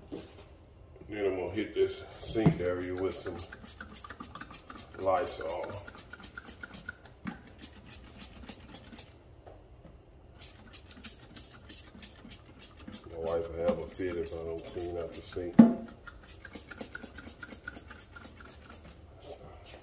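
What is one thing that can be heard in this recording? A spray bottle squirts in quick bursts.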